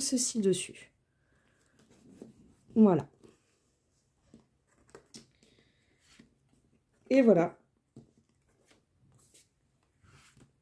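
Stiff paper cards slide and rustle softly under hands.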